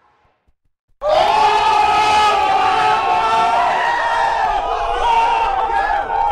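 A triumphant fanfare of music plays loudly.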